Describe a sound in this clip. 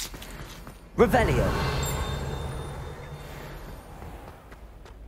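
A magic spell bursts with a crackling, fizzing rush that slowly fades.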